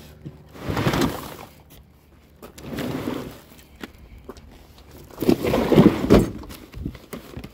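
Plastic sheeting rustles and crinkles close by.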